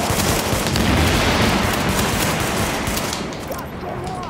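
Gunfire rattles and explosions boom.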